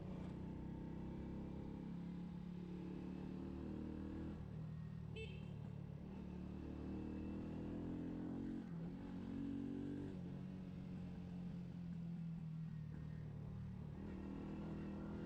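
A scooter engine hums steadily and changes pitch as the rider speeds up and slows down.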